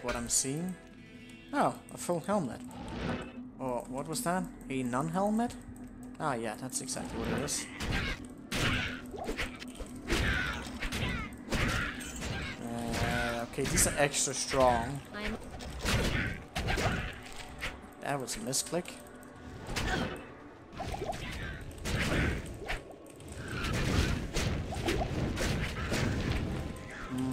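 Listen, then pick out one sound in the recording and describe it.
Game spells and hits crackle and thud.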